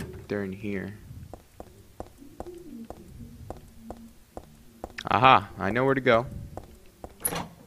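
Footsteps run quickly across a hard tiled floor.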